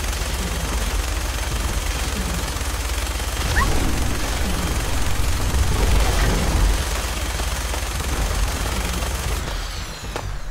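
A flamethrower roars in a steady, heavy rush.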